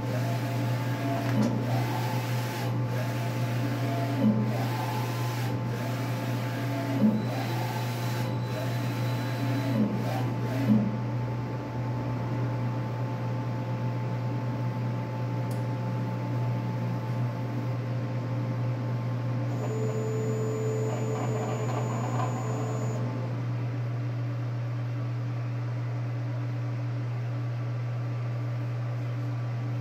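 A large printer hums steadily.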